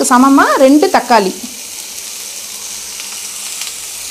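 Chopped tomatoes tumble into a pan.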